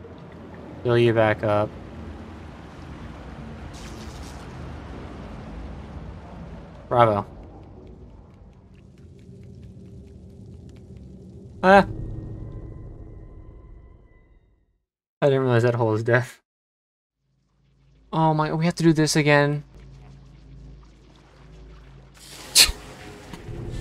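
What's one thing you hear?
A young man talks and exclaims into a microphone with animation.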